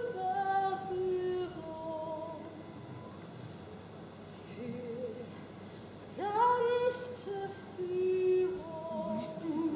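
A woman sings through a loudspeaker outdoors, holding long notes.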